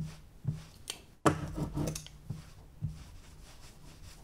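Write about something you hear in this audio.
A sponge dabs and rubs on paper.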